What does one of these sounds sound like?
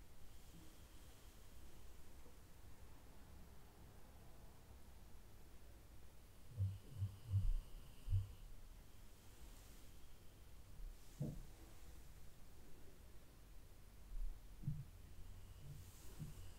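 A paintbrush strokes softly across skin.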